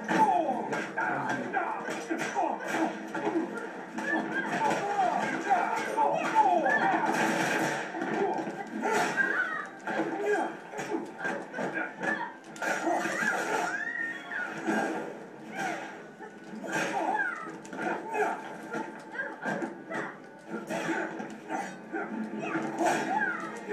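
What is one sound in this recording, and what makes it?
A fighting game plays through a television's speakers.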